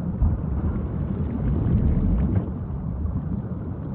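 A whale exhales with a loud whoosh through its blowhole.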